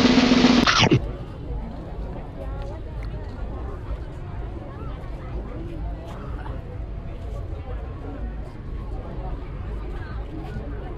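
A young woman chews something crunchy close by.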